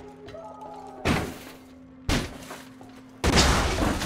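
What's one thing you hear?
A metal door rattles and bangs loudly.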